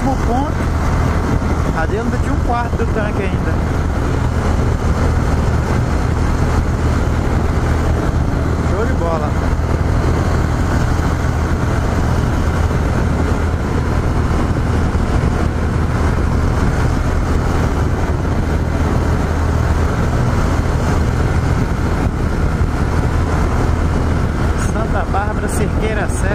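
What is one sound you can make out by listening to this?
Wind roars loudly against a microphone at speed.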